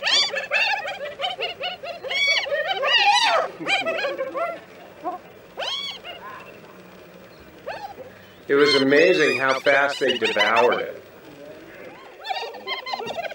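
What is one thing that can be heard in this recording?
Hyenas giggle and whoop excitedly at close range.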